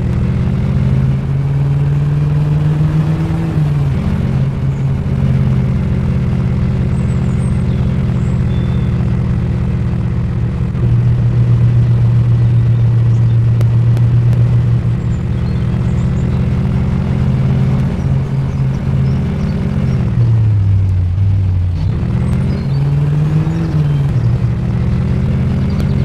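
A car engine hums steadily, its pitch rising and falling with speed.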